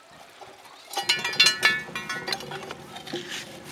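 A metal bar scrapes and grinds against a concrete slab.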